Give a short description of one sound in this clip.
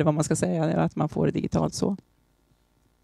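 A woman speaks calmly through a headset microphone, amplified in a room.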